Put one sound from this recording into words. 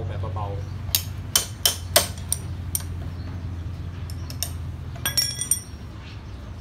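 Metal parts click and clink on a motorbike wheel hub.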